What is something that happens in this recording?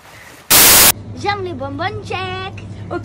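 A young woman laughs and talks excitedly close by.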